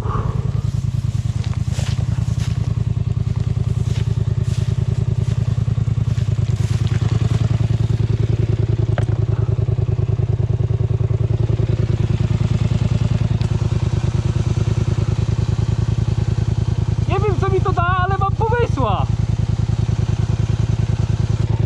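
An engine idles with a fast, steady throb.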